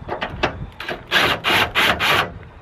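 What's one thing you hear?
An impact wrench hammers in rapid bursts.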